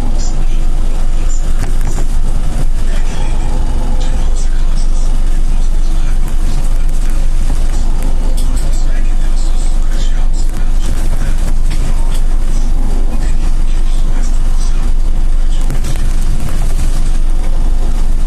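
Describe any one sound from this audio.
A trolleybus engine hums steadily from inside the cabin.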